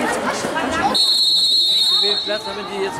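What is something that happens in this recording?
A referee blows a whistle in one long shrill blast.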